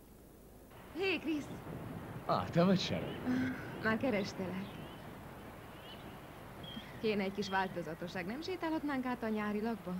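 A woman speaks in a raised, tense voice nearby.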